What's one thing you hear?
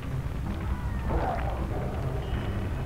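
A creature bursts apart with a sudden crackling rush.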